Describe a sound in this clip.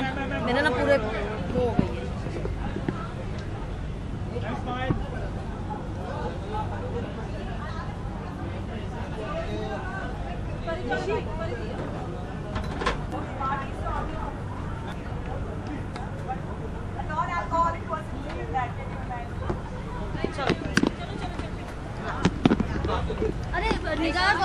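A young woman speaks calmly and close by.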